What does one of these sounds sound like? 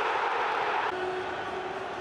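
A man shouts with joy.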